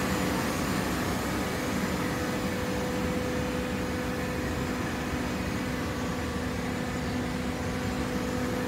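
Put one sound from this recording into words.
A large machine hums steadily in an echoing hall.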